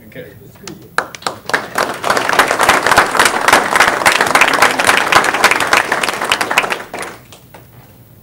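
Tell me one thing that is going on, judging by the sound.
An audience applauds loudly in a room.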